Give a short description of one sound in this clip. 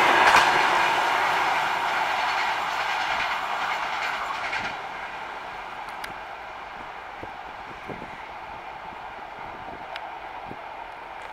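A passenger train rumbles and clatters along the tracks, slowly fading into the distance.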